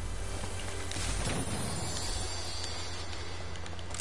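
A video game treasure chest opens with a shimmering chime.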